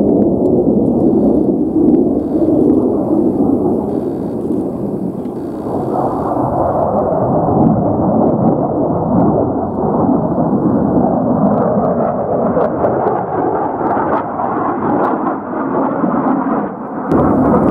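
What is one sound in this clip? A jet engine roars loudly overhead as a fighter plane flies past.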